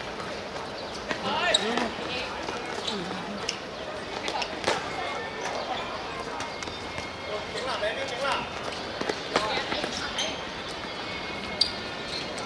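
Shoes squeak on a hard court.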